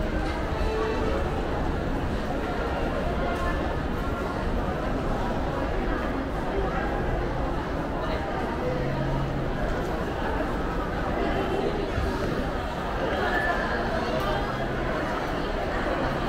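Footsteps shuffle on a hard floor nearby.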